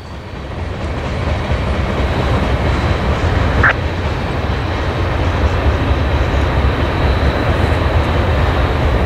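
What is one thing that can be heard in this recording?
Wind buffets loudly outdoors with a steady low rumble.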